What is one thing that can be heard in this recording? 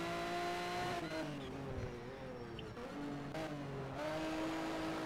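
A racing car engine drops in pitch as it downshifts under braking.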